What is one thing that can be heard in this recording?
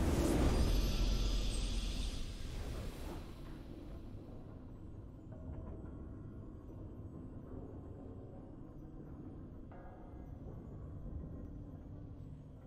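A triumphant fanfare swells as the game ends.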